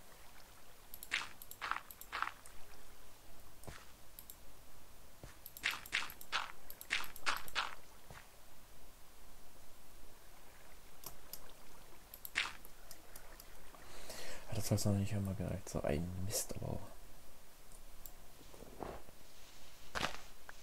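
Dirt and earth blocks crunch in short bursts as they are dug out.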